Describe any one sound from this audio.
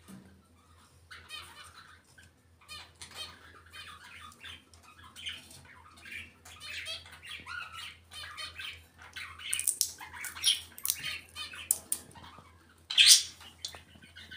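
A parrot chatters and squawks close by.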